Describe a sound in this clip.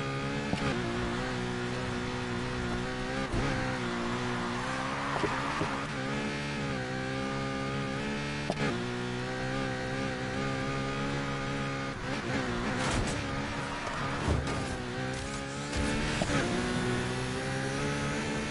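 A race car engine roars at high revs, rising and dropping in pitch as it shifts gears.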